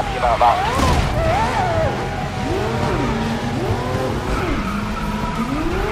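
Tyres screech on asphalt through tight corners.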